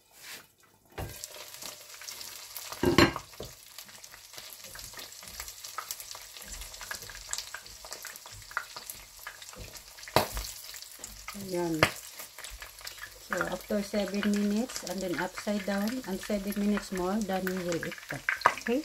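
Food sizzles and spits in hot oil in a frying pan.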